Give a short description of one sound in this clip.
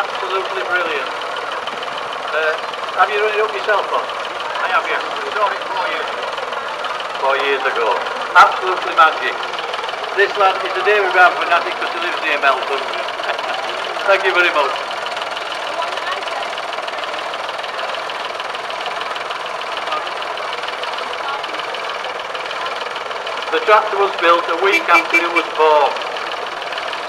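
A man talks nearby outdoors.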